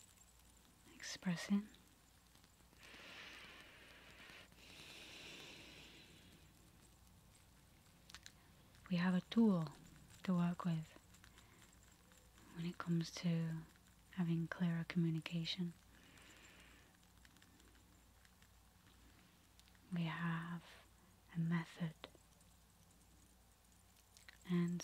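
A young woman speaks softly and closely into a microphone, with pauses.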